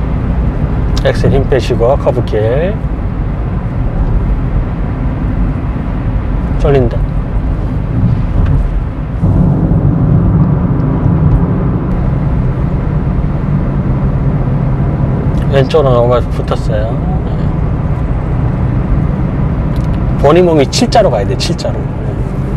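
A man speaks calmly in short bursts close by.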